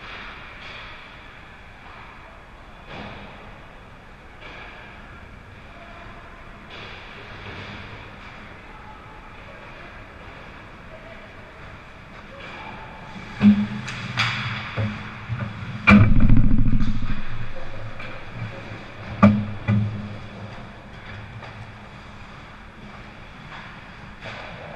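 Skates scrape across the ice in a large echoing rink.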